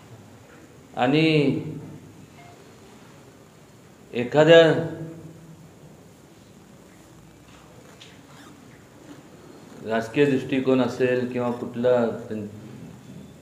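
A middle-aged man speaks calmly into a nearby microphone, in short bursts with pauses.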